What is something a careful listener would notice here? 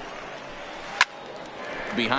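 A pitched ball smacks into a catcher's mitt.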